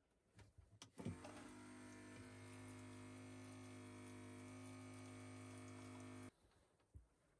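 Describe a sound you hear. Water runs from a tap into a metal pot, rising in pitch as the pot fills.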